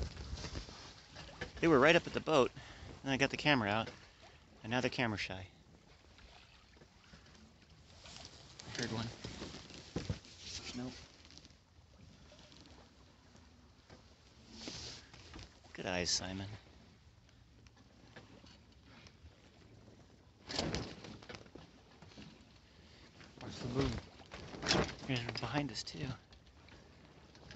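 Waves splash and lap against a moving boat.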